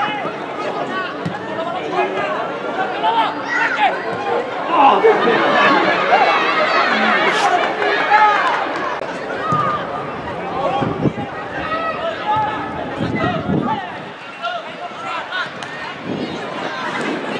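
Spectators and players shout and call out across an outdoor field.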